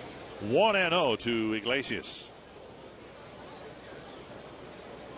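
A large outdoor crowd murmurs in a stadium.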